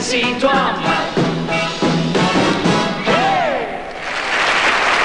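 A band plays lively music.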